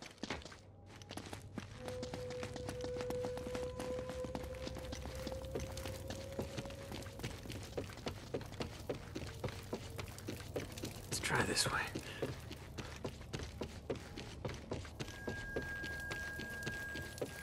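Footsteps run quickly over stone and up creaking wooden stairs.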